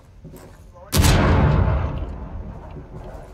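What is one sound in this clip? A loud explosion booms and rumbles away.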